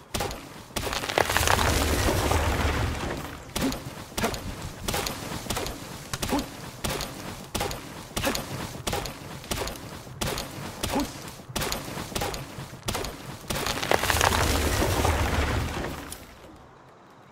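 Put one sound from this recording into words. A tree cracks and falls with a loud crash.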